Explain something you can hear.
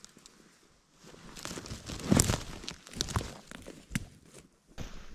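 Footsteps crunch through dry leaves and twigs.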